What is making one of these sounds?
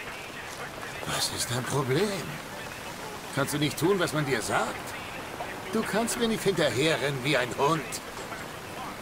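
An older man speaks gruffly and close up.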